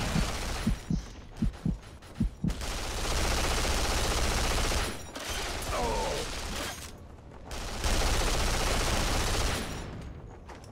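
A gun fires in bursts in a video game.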